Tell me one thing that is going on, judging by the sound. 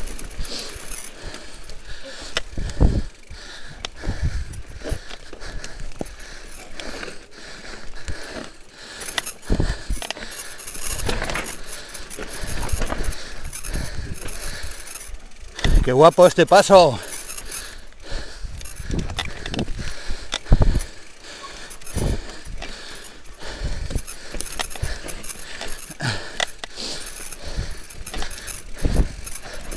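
Mountain bike tyres rumble and crunch over a rocky trail.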